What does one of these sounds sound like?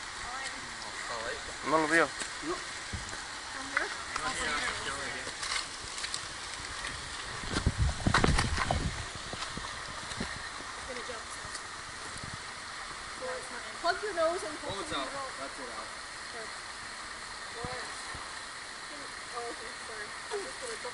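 Young people shout and call out nearby outdoors.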